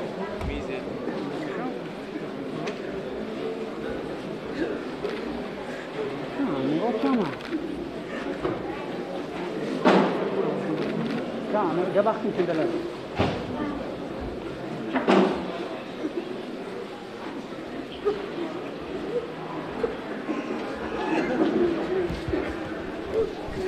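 A man sobs and cries out close by.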